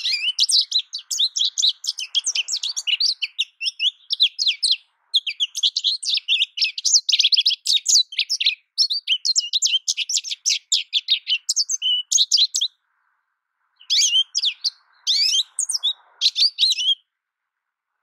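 A small songbird sings a rapid, twittering song close by.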